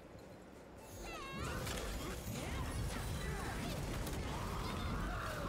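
Loud video game combat effects crash and whoosh.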